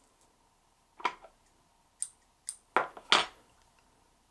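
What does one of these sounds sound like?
A bobbin clicks and taps against a small vise.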